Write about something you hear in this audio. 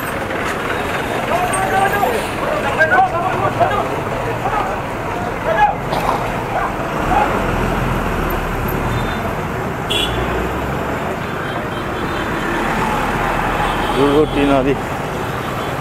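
A bus engine idles and pulls away close by.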